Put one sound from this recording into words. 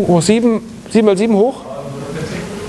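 A woman speaks with animation in a large echoing room.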